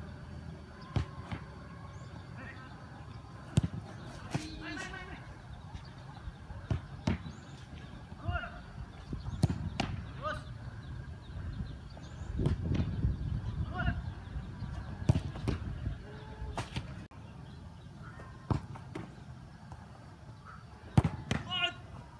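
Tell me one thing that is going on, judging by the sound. A football is kicked with sharp thuds outdoors.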